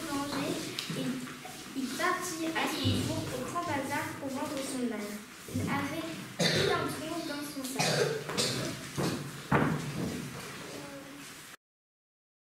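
A young girl reads aloud in a clear voice.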